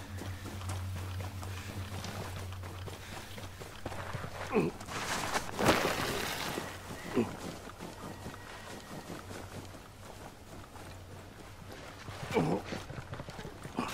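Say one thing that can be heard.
Footsteps crunch through grass and snow.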